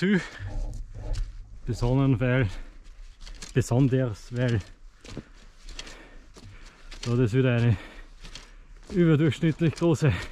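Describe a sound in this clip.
Dry leaves rustle underfoot as someone walks.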